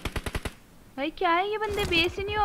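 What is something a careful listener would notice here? A young woman speaks into a microphone.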